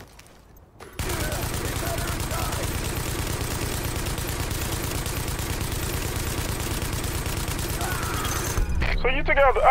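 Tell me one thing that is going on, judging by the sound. A rifle fires in a long, rapid burst.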